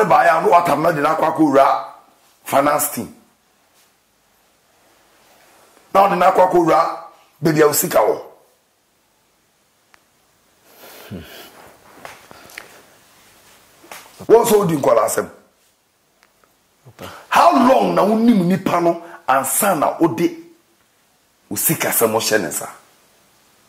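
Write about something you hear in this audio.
A man speaks with animation in short bursts through a microphone, with pauses between.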